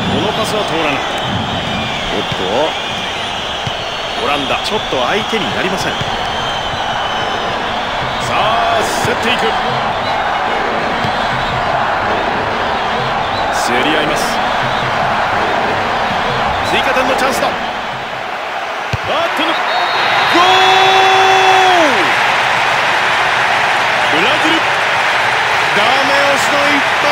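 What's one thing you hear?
A stadium crowd roars steadily and swells into loud cheering.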